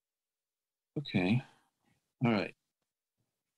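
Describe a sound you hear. A second man speaks briefly over an online call.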